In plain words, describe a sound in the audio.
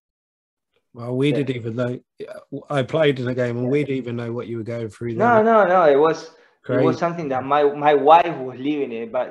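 A man with a deeper voice speaks with animation over an online call.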